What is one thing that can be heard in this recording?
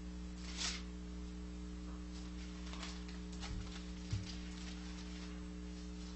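Book pages rustle as they are turned.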